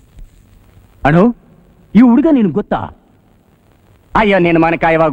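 An elderly man speaks with animation up close.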